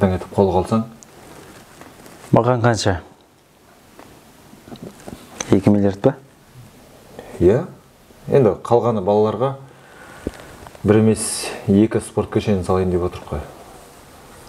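A young man speaks calmly and earnestly, close by.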